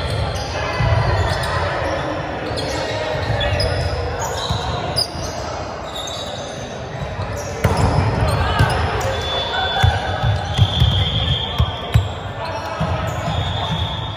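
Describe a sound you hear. Many young people chatter and call out in a large echoing hall.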